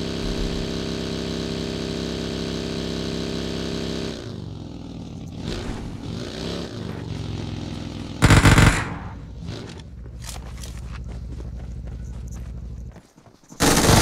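An off-road buggy engine drones steadily, then rises and falls in pitch.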